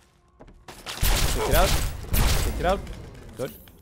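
A rifle fires several loud shots in an echoing room.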